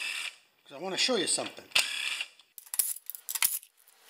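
A cordless drill clicks and rattles in short bursts.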